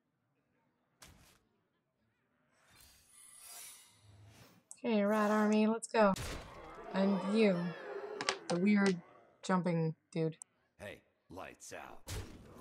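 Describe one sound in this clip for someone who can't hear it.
Game sound effects whoosh and chime as a card is played.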